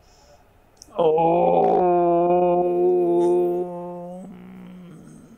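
An elderly man chants one long, steady low note close by.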